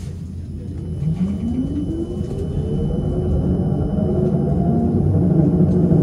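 A tram's electric motor whines, rising in pitch as it speeds up.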